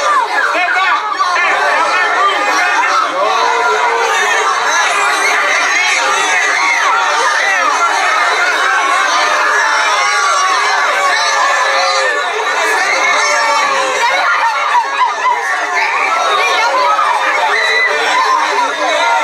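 A large crowd of young people chatters and cheers loudly outdoors.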